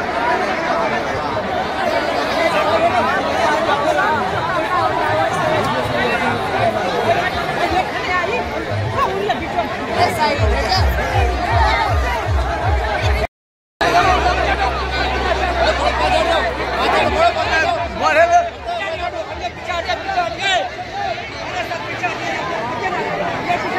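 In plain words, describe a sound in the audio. A large crowd of men and women chatters and shouts all around, outdoors.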